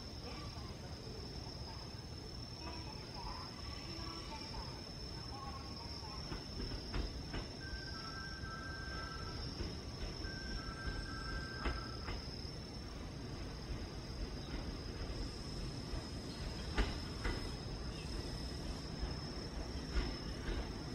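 A train rumbles as it slowly approaches along the tracks.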